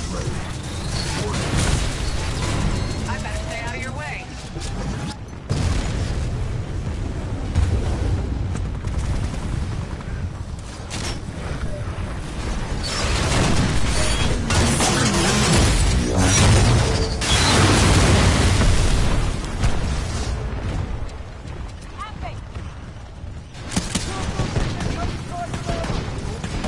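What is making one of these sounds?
Gunfire and explosions boom in a video game.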